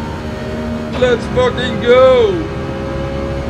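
A man shouts out excitedly into a microphone.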